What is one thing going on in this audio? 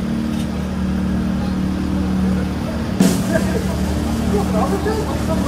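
A motorcycle engine idles with a steady low hum.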